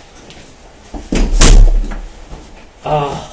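A door bangs shut with a thud.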